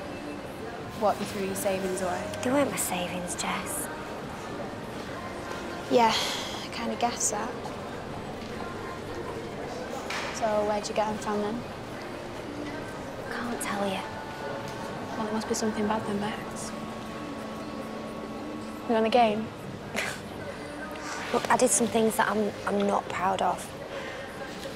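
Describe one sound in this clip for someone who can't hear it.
A second teenage girl answers quietly at close range.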